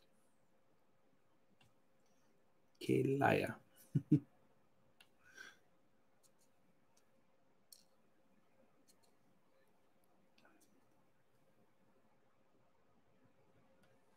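A pen tip clicks softly as it presses small beads into place.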